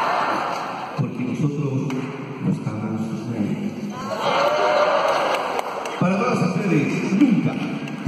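A man sings into a microphone over a loudspeaker.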